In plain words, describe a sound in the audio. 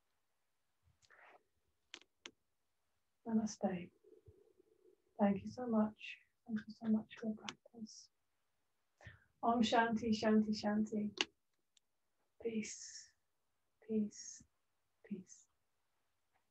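A woman speaks calmly and warmly over an online call, with pauses.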